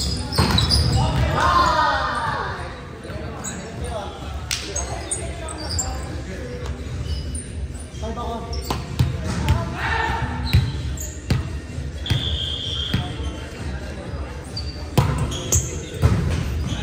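Young men and women call out and chatter across the gym.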